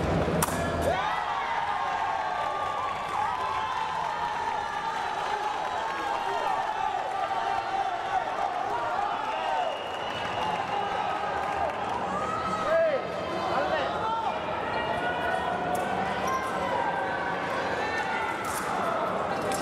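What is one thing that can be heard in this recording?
Shoes squeak sharply on the floor.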